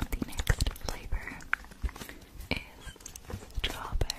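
A paper packet crinkles close to a microphone.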